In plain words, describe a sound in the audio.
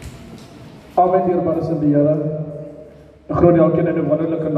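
A second man speaks loudly with animation through a microphone.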